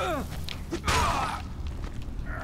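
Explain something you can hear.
A heavy blow lands with a thud.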